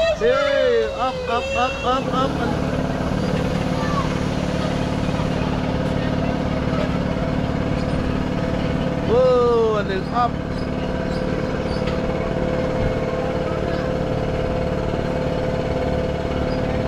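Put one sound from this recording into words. A ride's motor hums steadily as it spins.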